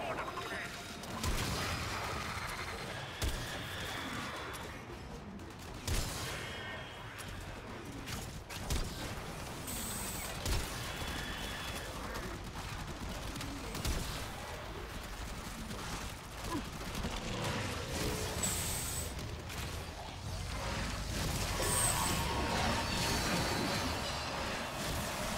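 Gunshots fire in short bursts.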